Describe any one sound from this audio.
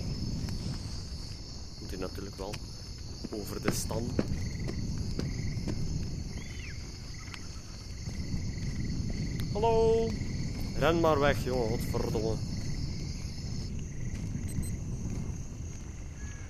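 A torch flame crackles and roars softly.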